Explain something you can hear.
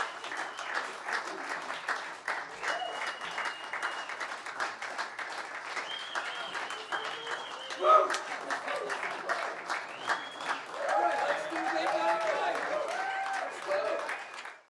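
A crowd cheers and claps.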